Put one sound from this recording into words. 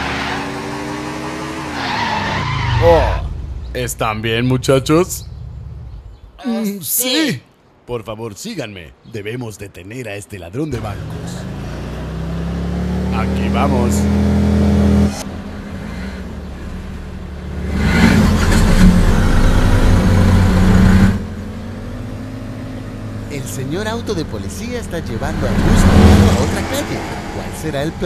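Vehicle engines rumble and whine as they drive along.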